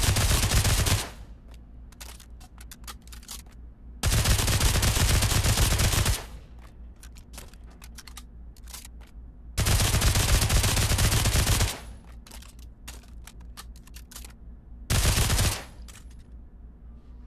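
Spent shell casings clink and clatter on a hard floor.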